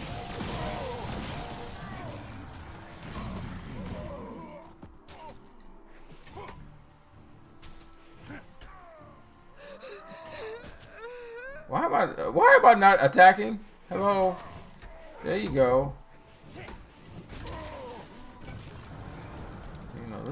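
Magic blasts and hits sound in a game fight.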